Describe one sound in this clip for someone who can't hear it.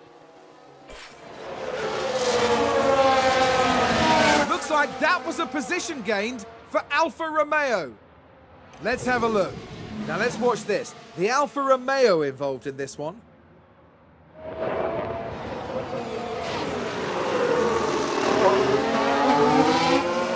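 Racing car engines scream past, rising and falling in pitch.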